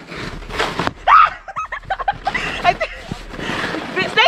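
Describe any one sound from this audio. A sled slides and scrapes over snow.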